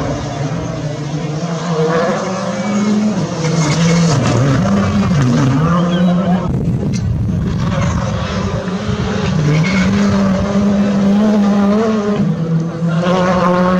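A rally car engine revs hard, rising and falling as gears change.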